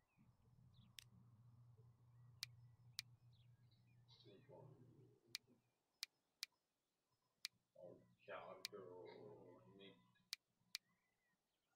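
Short interface clicks sound as menu items are selected.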